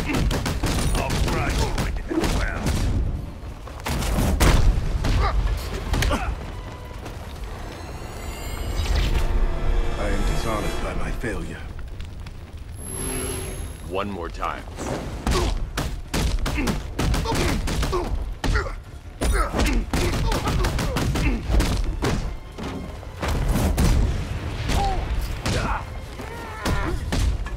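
Punches and kicks land with heavy thuds in a fast brawl.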